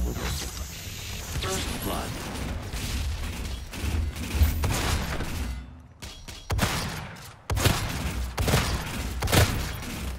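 Guns fire in loud, rapid blasts, one after another.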